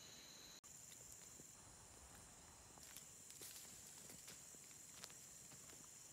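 Footsteps crunch softly on a dirt trail.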